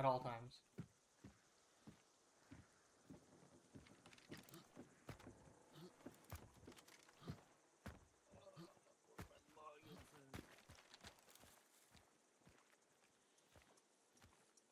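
Footsteps thud on wooden boards and dry ground at a steady walking pace.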